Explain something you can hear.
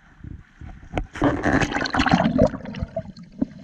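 Water splashes as a swimmer dives under the surface.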